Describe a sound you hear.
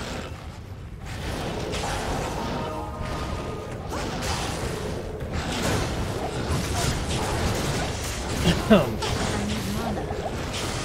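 Spells blast and crackle in a game battle.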